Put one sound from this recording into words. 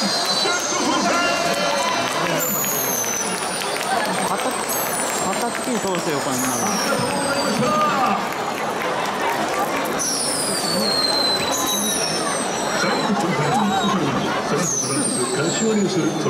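Balloons squeal as they fly up and deflate.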